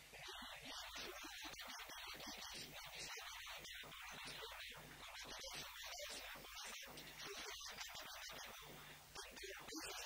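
An elderly man speaks steadily into a microphone, heard through loudspeakers in a large hall.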